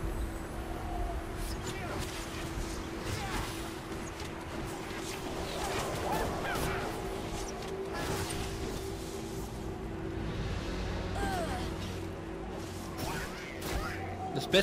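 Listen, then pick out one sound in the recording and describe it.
Spell effects whoosh and crackle as game characters fight.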